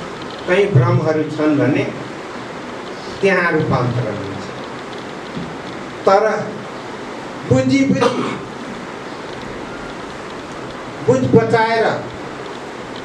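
A middle-aged man speaks forcefully into a microphone in short bursts, with pauses between phrases.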